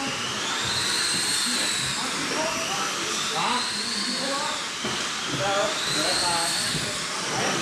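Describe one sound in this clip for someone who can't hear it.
Small electric racing cars whine at high speed, their pitch rising and falling as they race around a track.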